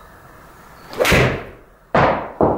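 A golf club whacks a ball with a sharp crack.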